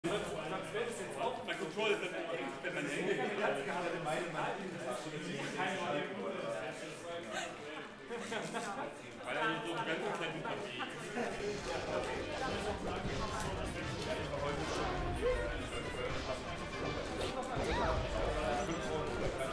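A young man talks casually near a microphone.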